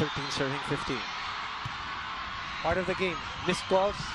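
A volleyball is struck hard on a serve.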